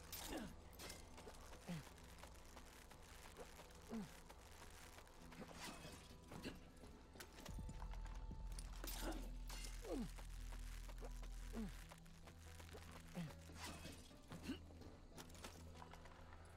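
Hands and boots clank on a metal tower while climbing.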